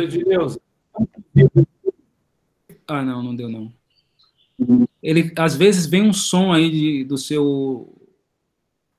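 A middle-aged woman speaks emphatically over an online call.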